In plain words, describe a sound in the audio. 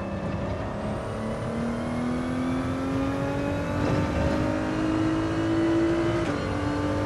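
A racing car engine roars and climbs steadily in pitch, then drops briefly as a gear shifts.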